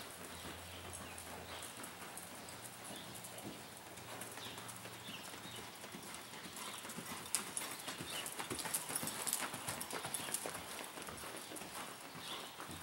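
Horse hooves thud and scuff in soft dirt.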